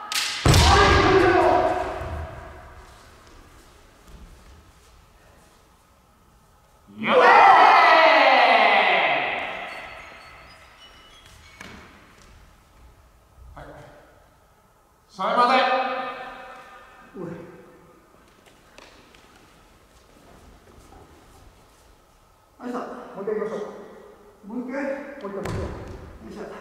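Kendo fighters shout loud, drawn-out cries that echo through a large hall.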